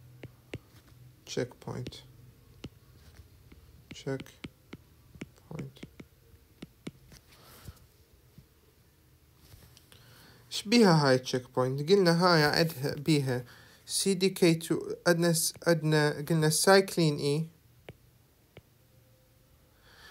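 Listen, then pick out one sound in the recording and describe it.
A stylus taps and scratches on a glass surface.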